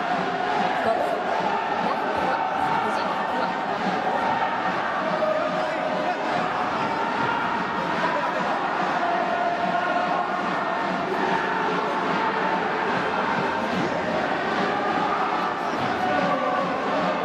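A brass band plays a loud, lively tune in a large echoing stadium.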